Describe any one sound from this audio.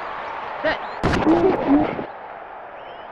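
Players collide with heavy thuds.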